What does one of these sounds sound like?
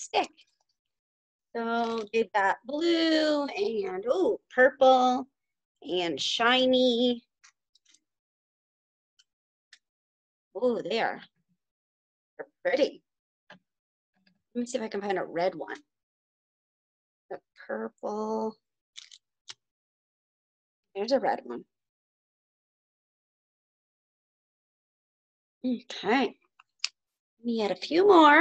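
A woman speaks calmly close by, in short phrases with pauses.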